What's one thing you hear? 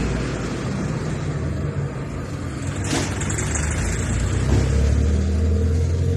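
A motorcycle engine rumbles past.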